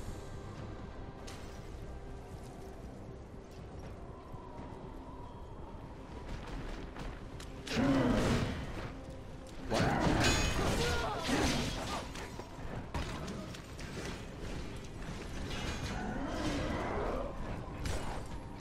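A sword slashes and strikes with sharp metallic hits.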